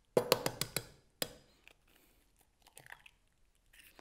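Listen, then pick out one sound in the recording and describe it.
An egg cracks against a jug.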